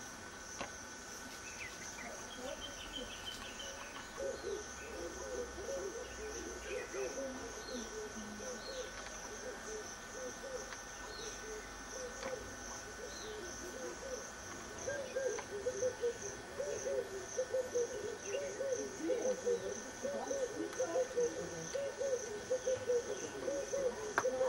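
Hooves rustle dry leaves as a small antelope steps through them.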